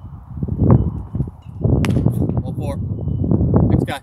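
A baseball smacks into a leather glove with a sharp pop.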